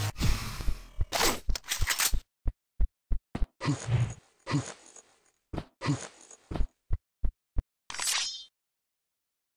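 A gun fires in short, sharp bursts.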